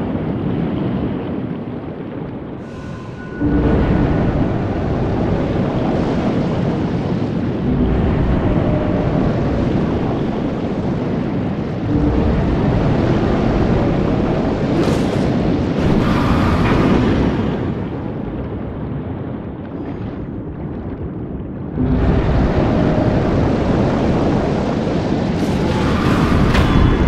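A muffled underwater rumble churns steadily.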